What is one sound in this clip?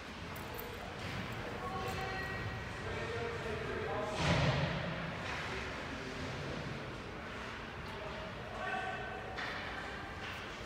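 Young players shout and call out in a large, echoing ice rink.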